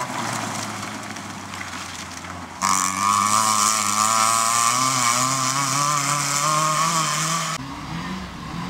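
A small car's engine revs hard as it speeds away down a gravel track.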